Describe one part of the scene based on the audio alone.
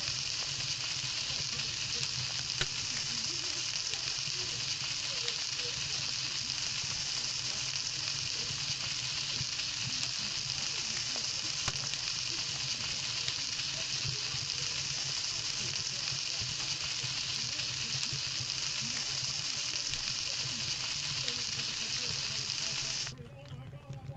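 A campfire crackles steadily.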